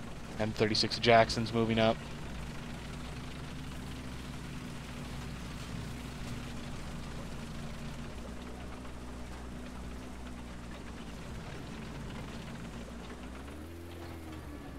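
A tank engine rumbles steadily and revs up near the end.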